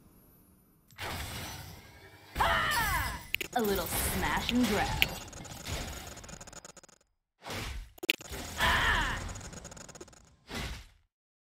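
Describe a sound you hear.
Video game combat effects whoosh and clash.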